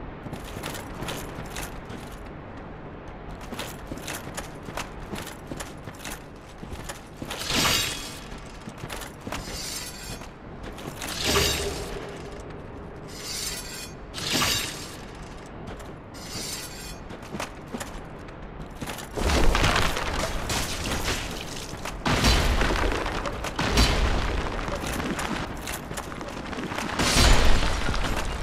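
Armoured footsteps clank steadily on stone.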